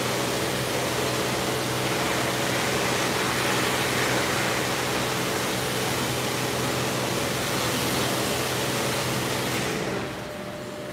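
Water sprays hiss steadily in a large echoing bay, then stop.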